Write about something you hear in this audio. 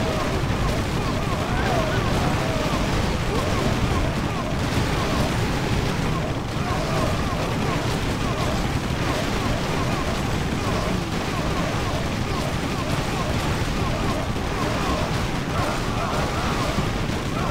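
Swords clash and clang in a busy game battle.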